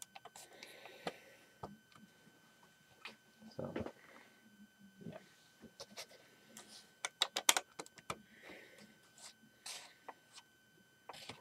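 Plastic toy bricks click and clack as they are handled and snapped together.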